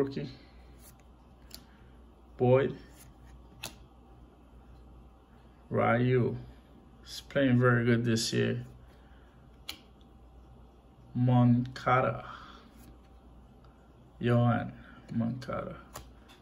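Glossy trading cards are flipped through by hand.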